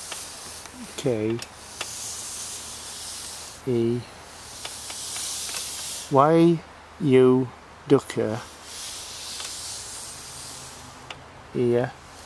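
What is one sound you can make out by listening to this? A woman speaks in short, drawn-out calls nearby.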